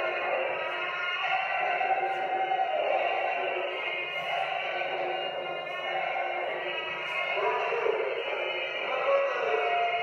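Shoes shuffle and tap on a hard floor.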